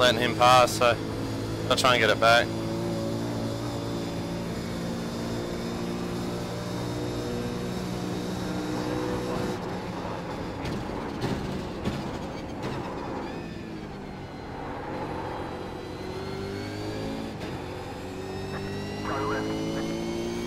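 A racing car engine drones and changes pitch as the car speeds up and slows down.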